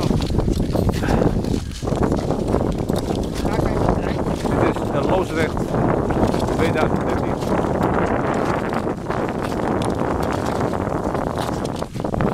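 Ice skates scrape and hiss over rough ice.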